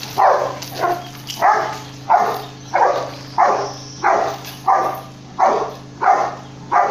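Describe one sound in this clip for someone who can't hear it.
A dog barks loudly and repeatedly close by.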